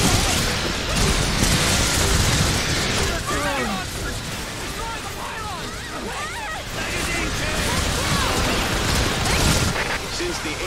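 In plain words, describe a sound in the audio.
Laser beams zap and whine.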